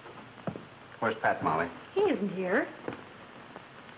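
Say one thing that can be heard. A young woman speaks anxiously nearby.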